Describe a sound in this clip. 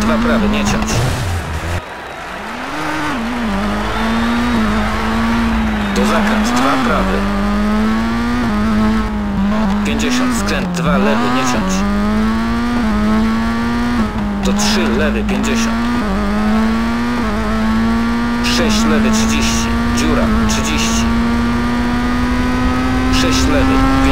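Tyres crunch and skid over gravel.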